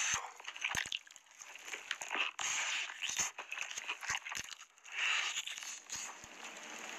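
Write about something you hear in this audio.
A young man bites and crunches loudly into food close to a microphone.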